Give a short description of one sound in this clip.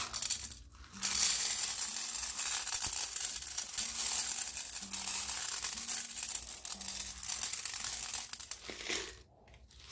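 Granules pour and patter out of a plastic bag.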